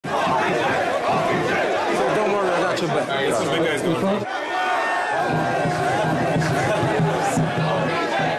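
A crowd of young people screams and cheers excitedly.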